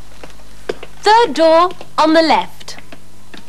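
A young woman speaks brightly and animatedly.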